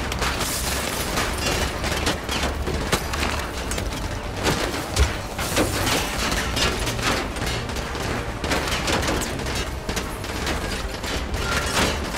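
Bullets strike and crack glass in sharp bursts.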